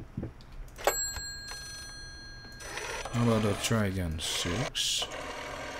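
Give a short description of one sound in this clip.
A rotary telephone dial turns and whirs back with clicks.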